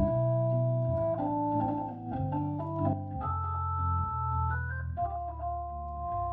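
A keyboard plays chords and a melody with a warm electric piano sound.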